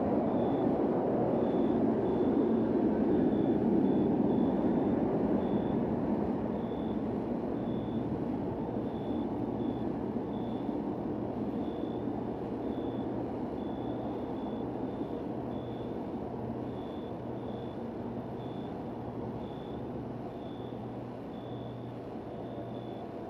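Heavy rain pours steadily onto a wet street, slowly growing a little softer.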